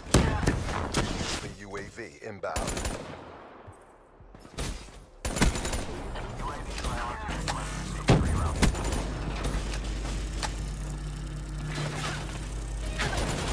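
Gunshots crack in sharp bursts.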